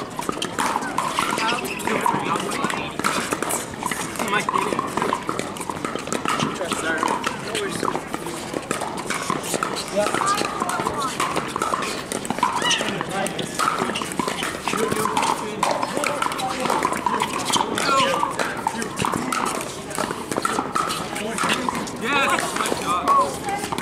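Paddles pop against a plastic ball in a quick rally.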